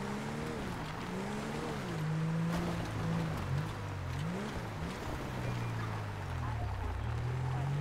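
Tyres crunch over a dirt road.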